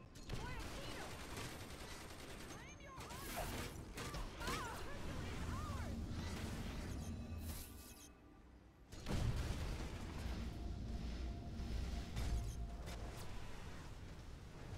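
Explosions and blasts of magic go off in quick bursts.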